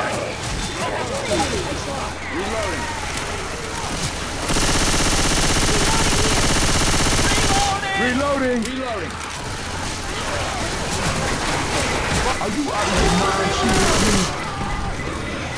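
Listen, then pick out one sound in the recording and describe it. Automatic gunfire rattles in quick bursts.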